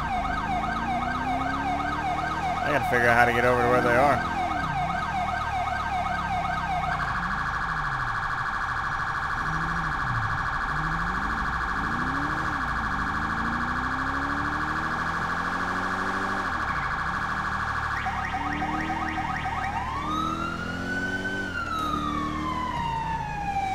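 A car engine revs up and down as it speeds along.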